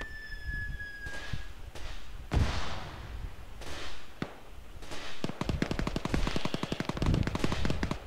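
Smoke grenades burst and hiss in the distance.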